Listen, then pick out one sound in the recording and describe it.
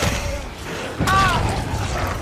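A heavy blow lands with a wet thud.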